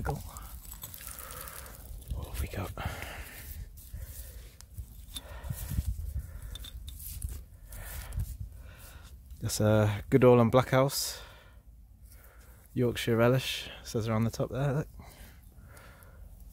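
A gloved hand scrapes and brushes through loose, crumbly soil.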